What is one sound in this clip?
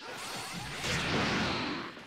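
Water splashes and sprays.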